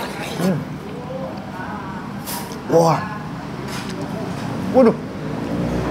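A man hums and murmurs with pleasure close to a microphone.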